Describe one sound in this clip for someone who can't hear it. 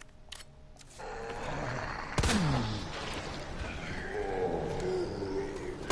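A zombie growls and groans close by.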